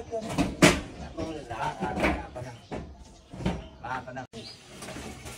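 A corrugated metal roof panel clanks and rattles as it is lifted.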